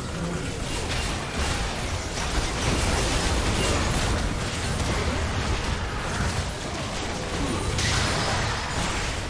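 Magic blasts and explosions crackle and boom in a busy fight.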